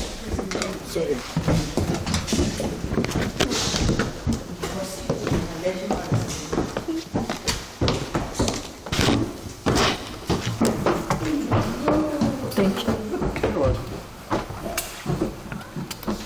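Footsteps thud on wooden stairs going down.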